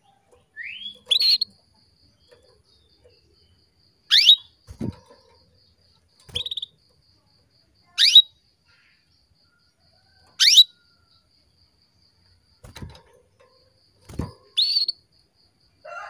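A small bird gives short, sharp rising chirps, one every few seconds.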